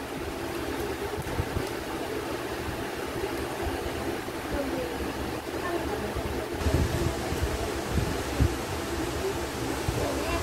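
Paper rustles in a girl's hands.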